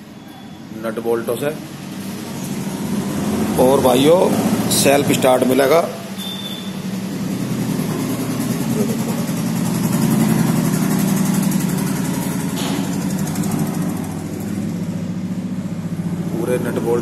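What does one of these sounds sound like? A tractor's diesel engine idles with a steady, low rumble close by.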